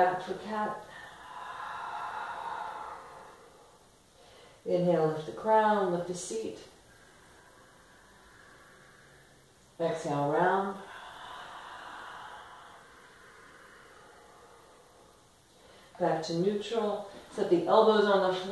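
A woman speaks calmly and softly, close by.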